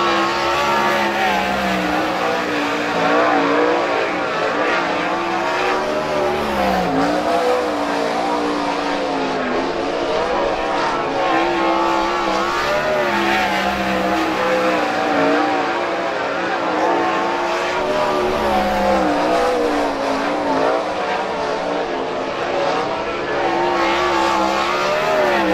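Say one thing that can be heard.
A racing car engine roars loudly, its pitch rising and falling as it revs.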